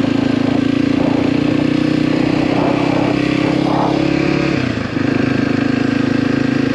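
Tyres crunch over a dirt track.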